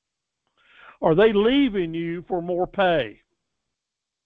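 A man speaks calmly through a microphone on an online call.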